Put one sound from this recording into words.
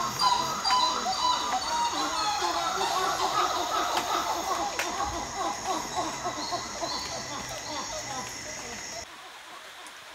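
A parrot squawks and chatters from a tree.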